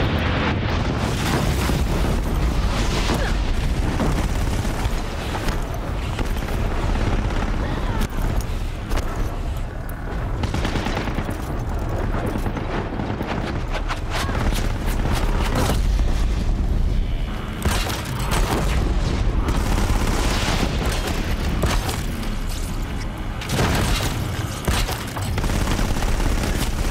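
Heavy mechanical machines roar and clank.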